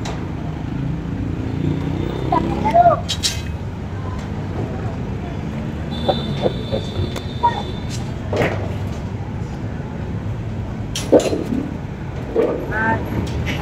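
Traffic rumbles steadily along a nearby road.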